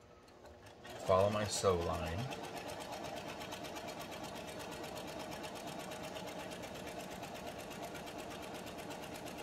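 A sewing machine runs with a fast, steady whirr.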